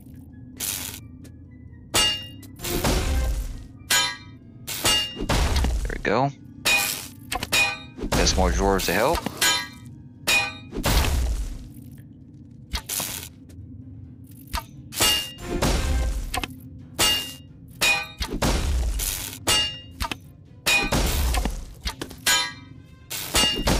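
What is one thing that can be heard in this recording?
A pickaxe strikes rock again and again at a steady pace.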